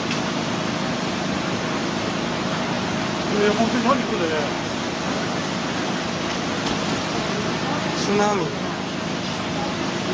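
Floodwater rushes and churns loudly.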